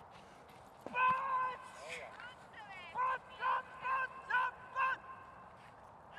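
A dog barks loudly and repeatedly.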